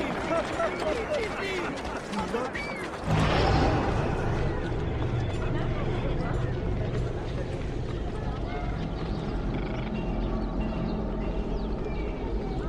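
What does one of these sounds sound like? Footsteps run quickly on stone.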